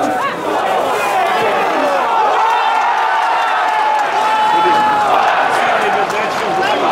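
Football players shout to each other across an open pitch.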